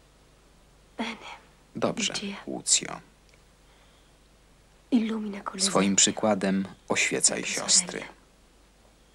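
A woman speaks softly and wearily, close by.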